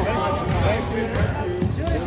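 A basketball bounces on the floor.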